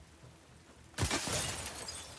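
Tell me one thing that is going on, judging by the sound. A gunshot cracks sharply close by.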